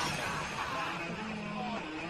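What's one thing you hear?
A young man groans in pain.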